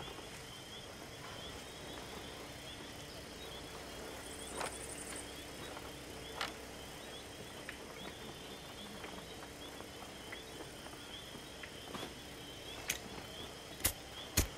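Footsteps tread on creaking wooden boards.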